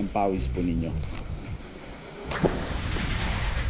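A cloth drops softly onto a wooden table.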